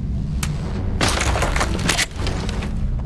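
A wooden crate smashes apart with a loud crack and clatter of boards.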